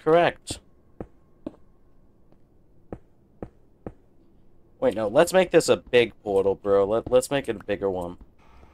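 A pickaxe taps repeatedly against hard stone blocks.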